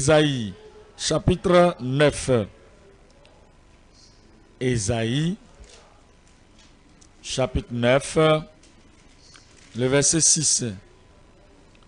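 An elderly man speaks slowly and emphatically through a microphone, with long pauses.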